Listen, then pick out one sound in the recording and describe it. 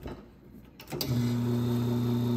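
A coffee machine pump starts and hums steadily.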